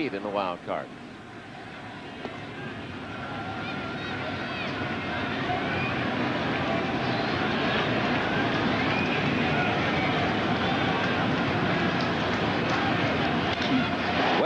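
A large stadium crowd murmurs and cheers, growing louder.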